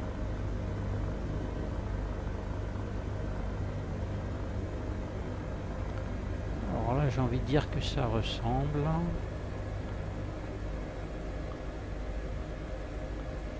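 A helicopter engine and rotor drone steadily from inside the cabin.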